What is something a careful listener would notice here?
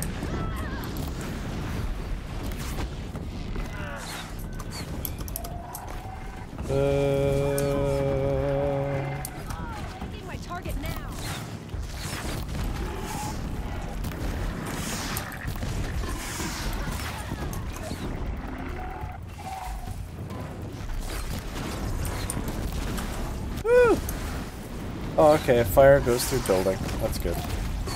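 A bowstring twangs as arrows are loosed.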